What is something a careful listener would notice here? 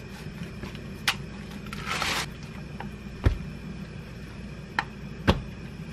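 A plastic package crackles and rustles.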